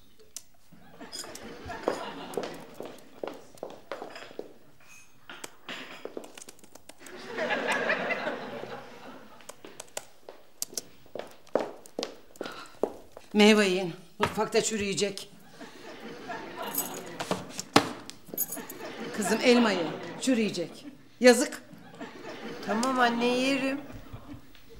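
Fingers tap on laptop keyboards.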